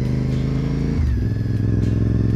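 A gear shifts with a brief drop in the motorcycle engine's pitch.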